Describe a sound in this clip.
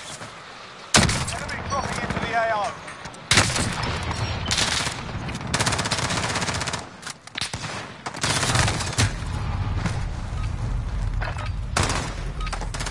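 Rifle shots ring out loudly.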